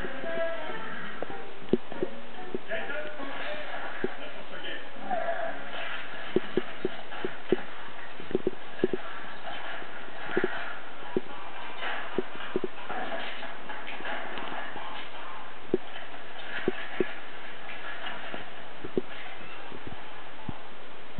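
A man talks quietly close by.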